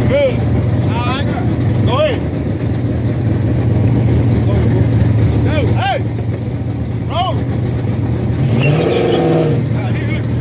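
A car engine idles with a deep, steady rumble close by.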